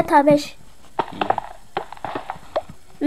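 A pickaxe chips at stone blocks.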